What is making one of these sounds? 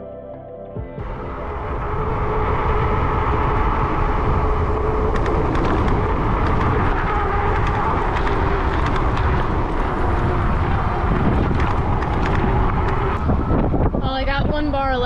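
Wind roars and buffets steadily.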